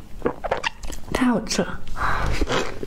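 A woman tears apart a crisp pastry close to a microphone.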